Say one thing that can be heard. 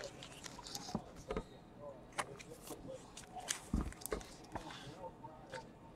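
Cards tap and click against a hard surface.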